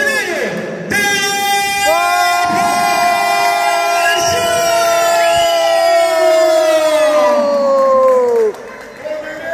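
A man announces loudly over a loudspeaker, drawing out his words in a long, fading call.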